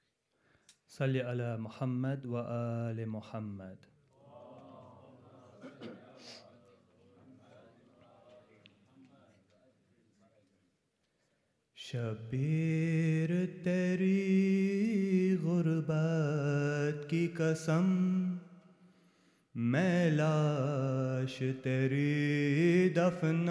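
A young man chants a mournful lament into a microphone, heard through loudspeakers in an echoing hall.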